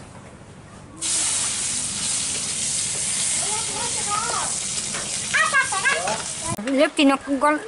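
Food sizzles in a pan over a fire.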